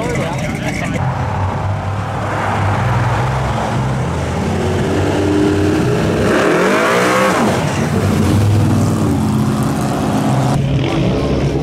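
A car engine roars as it drives closer and passes by.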